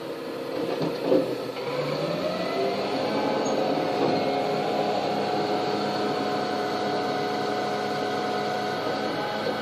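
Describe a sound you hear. A garbage truck's engine and hydraulic lifter whine steadily outside, heard through a window.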